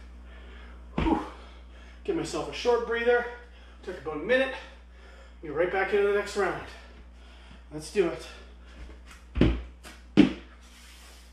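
Dumbbells thud onto the floor.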